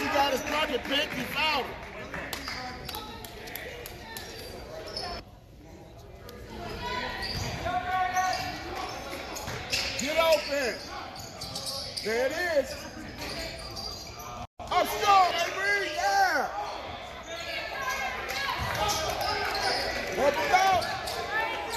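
Sneakers squeak sharply on a gym floor in an echoing hall.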